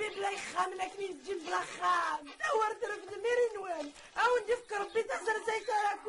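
A woman wails loudly.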